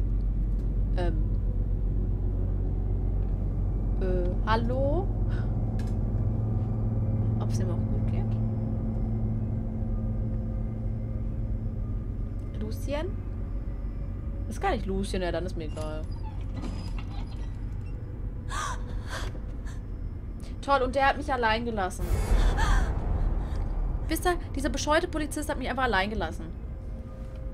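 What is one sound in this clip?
A young woman whimpers and gasps nearby in distress.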